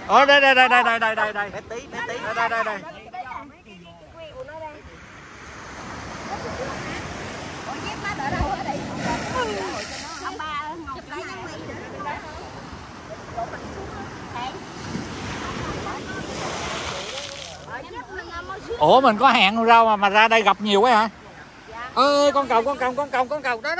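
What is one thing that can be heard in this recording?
A woman talks excitedly close by.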